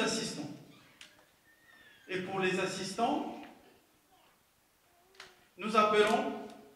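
A man speaks loudly through a loudspeaker in a large echoing hall.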